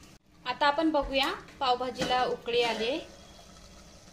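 A metal lid clinks against a pot.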